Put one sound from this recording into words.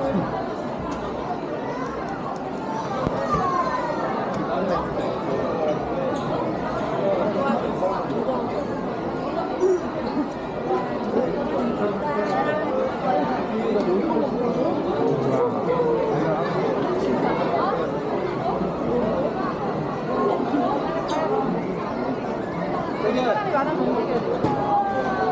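A crowd of shoppers chatters all around in a large, busy indoor hall.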